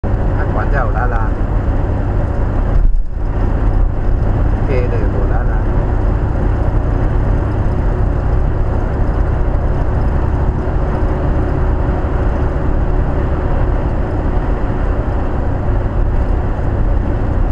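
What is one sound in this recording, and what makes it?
A car's engine hums steadily with loud road noise from inside the cabin.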